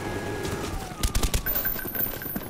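Gunshots crack in a quick burst.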